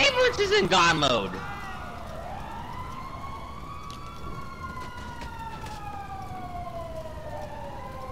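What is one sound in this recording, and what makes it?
A siren wails nearby, rising and falling in pitch.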